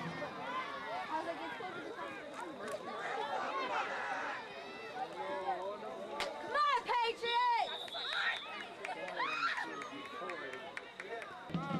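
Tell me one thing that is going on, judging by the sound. Men on the sideline shout loudly nearby.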